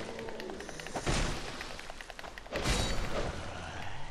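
A sword swings and strikes with a sharp metallic clash.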